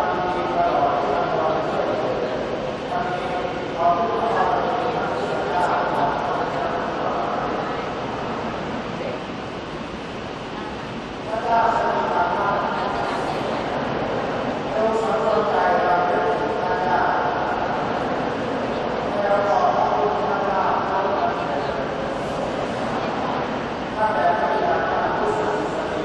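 A large choir sings a slow hymn in a wide, echoing open space.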